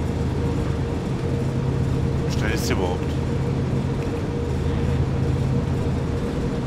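A diesel locomotive engine hums steadily with a low drone.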